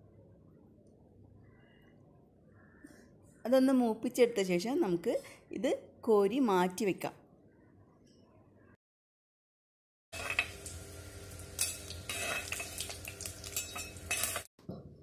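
Hot oil sizzles and crackles in a pot.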